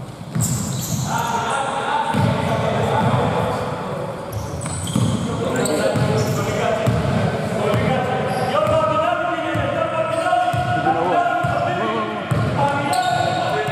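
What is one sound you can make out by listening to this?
A basketball bounces on a wooden court in a large echoing hall.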